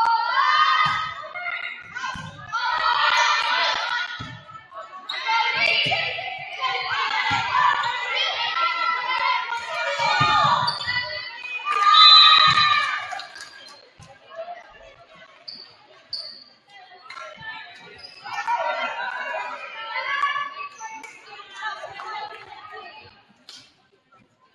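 Young women shout and call out to each other in a large echoing gym.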